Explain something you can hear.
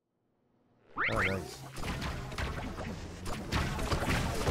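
Gunfire and blasts crackle from a video game.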